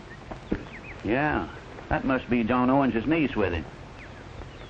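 A second man answers in a deep voice.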